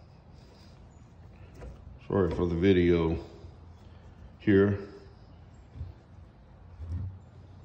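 A metal clamp knob is turned and tightened by hand.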